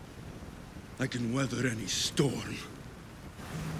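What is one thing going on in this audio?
A man speaks calmly and firmly, close by.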